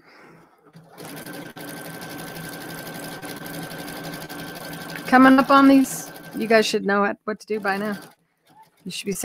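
A sewing machine hums and whirs steadily as it stitches.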